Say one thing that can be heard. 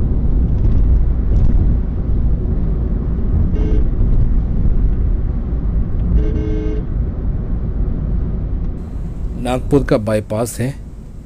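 A car's engine hums steadily as it drives along.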